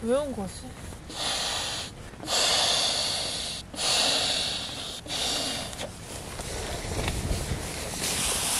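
Nylon fabric rustles and crinkles.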